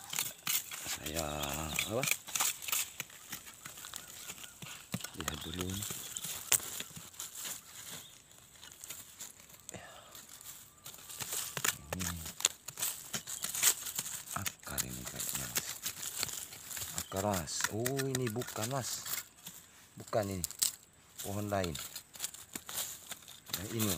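A blade chops and scrapes into dry soil.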